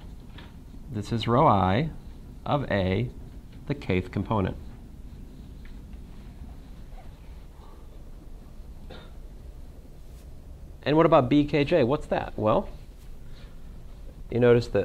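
A man speaks calmly in a lecture, in short bursts with pauses.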